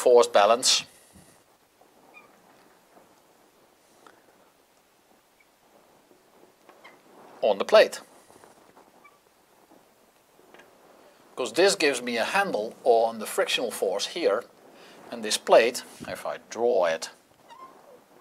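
A middle-aged man lectures calmly into a close microphone, with pauses.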